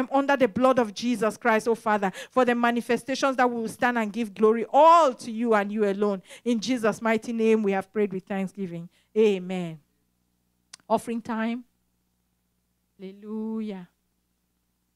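A woman sings with feeling into a microphone, heard through a loudspeaker in a large room.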